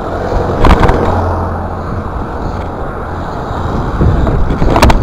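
BMX bike tyres roll on asphalt.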